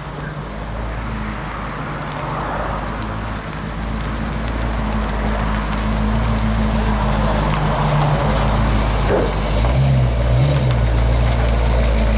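A classic V8 pickup truck rumbles as it rolls past at low speed.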